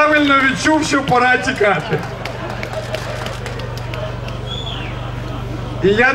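A man speaks loudly and passionately into a microphone, heard through loudspeakers outdoors.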